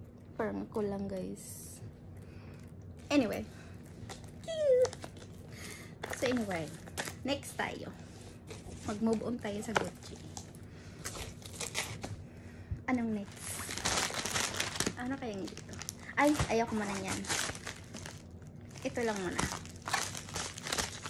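A young woman talks with animation, close to the microphone.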